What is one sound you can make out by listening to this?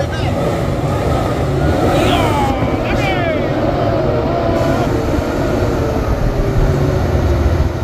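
Tyres crunch over a rough dirt road.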